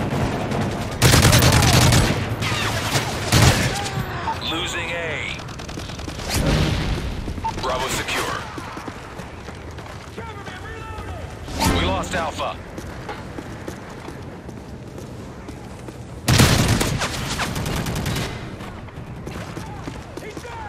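Rapid gunfire bursts in loud volleys.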